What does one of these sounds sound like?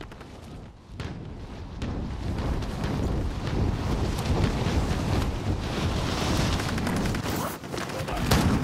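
Wind rushes loudly during a fast fall through the air.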